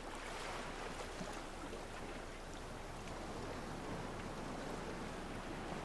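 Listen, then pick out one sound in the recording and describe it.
Waves wash steadily against a shore.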